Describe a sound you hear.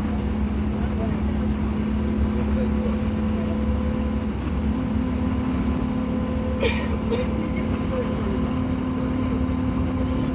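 A vehicle engine hums steadily over a low road rumble.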